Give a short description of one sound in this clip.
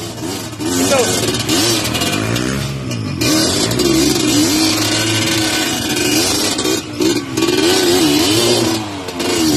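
A dirt bike engine revs hard and loud up close.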